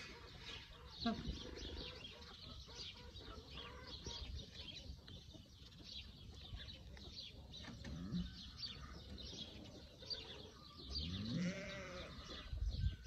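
Pigs grunt softly close by.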